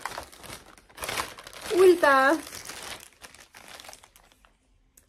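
A plastic bag crinkles in a woman's hands.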